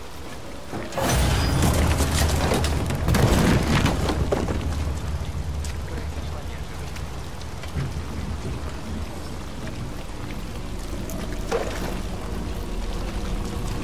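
Plastic debris rustles and crunches as someone moves through it.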